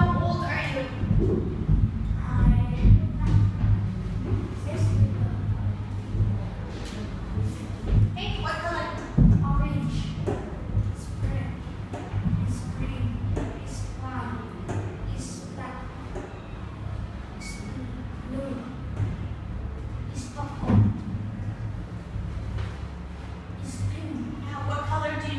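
A young woman speaks clearly and calmly, as if teaching.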